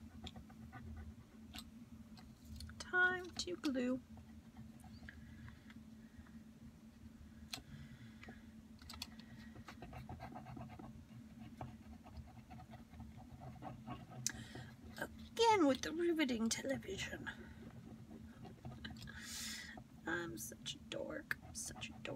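A small hand tool presses and taps on paper with soft clicks.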